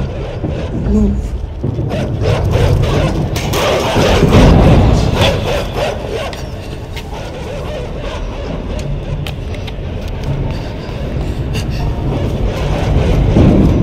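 A low, steady rumble drones in a large echoing space.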